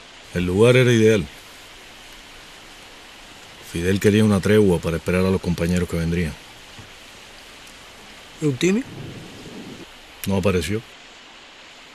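A young man speaks in a weary, strained voice close by.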